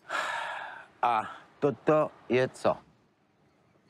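A man asks a question in a calm voice.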